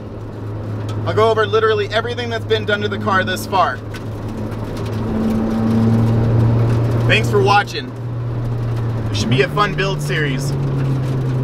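A car engine hums steadily and rises in pitch.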